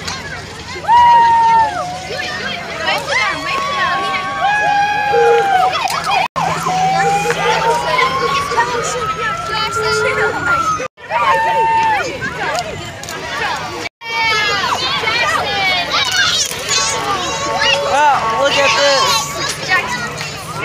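A fire truck siren wails and whoops, rising and falling in pitch.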